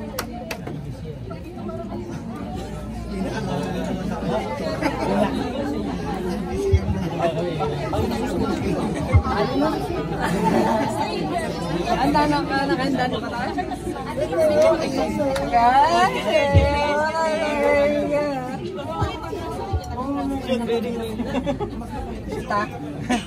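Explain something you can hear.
A crowd of men and women chatters loudly in an echoing room.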